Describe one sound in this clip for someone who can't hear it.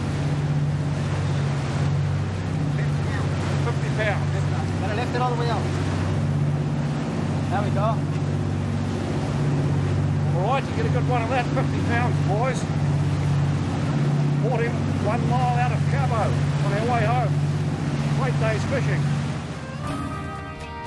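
Water rushes and churns in a boat's wake.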